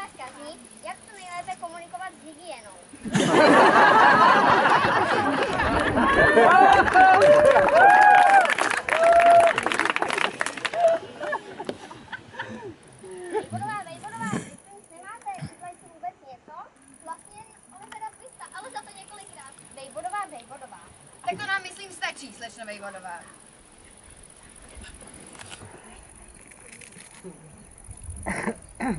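Young girls talk and call out in turns, outdoors.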